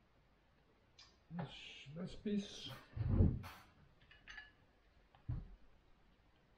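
A spoon scrapes and clinks against a bowl.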